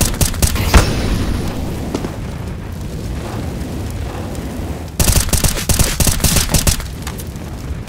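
Flames roar and crackle steadily nearby.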